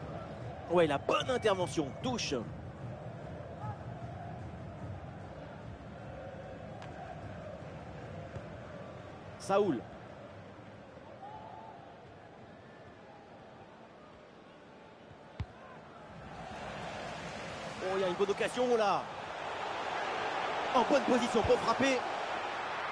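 A large stadium crowd murmurs and then swells into a loud roar.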